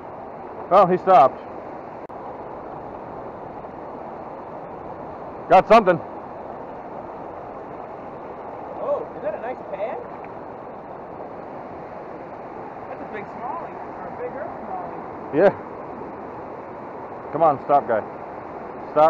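A river rushes steadily over rocks.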